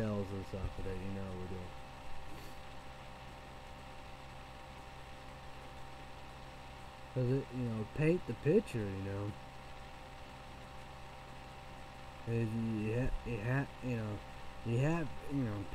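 A man speaks close to a microphone, in a calm, casual, conversational way.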